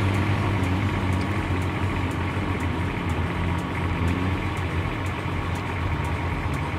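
An off-road vehicle's engine labours steadily as it climbs a steep dirt slope.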